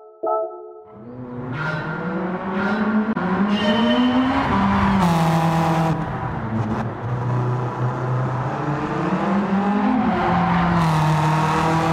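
A car engine revs hard and its pitch rises and falls as it shifts gears.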